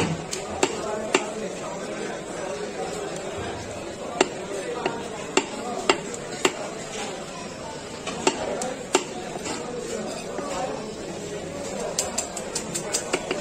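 A cleaver chops through fish on a wooden block with sharp knocks.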